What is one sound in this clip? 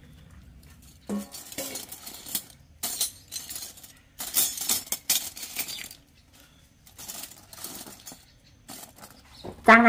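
Metal cutlery clinks and rattles as a hand stirs it.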